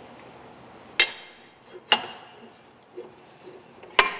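A heavy metal disc knocks against a steel shaft.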